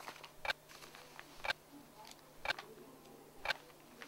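Magazine pages rustle as a man leafs through them.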